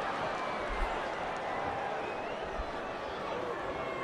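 A ball is kicked with a dull thud.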